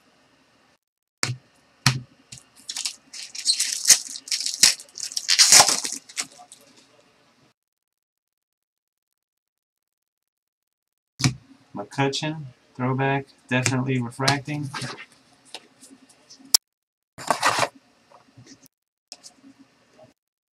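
Trading cards shuffle and flick in hands.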